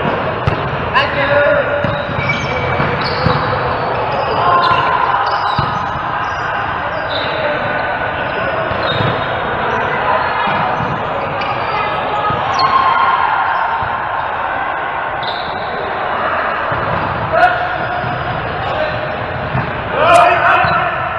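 Hands strike a volleyball.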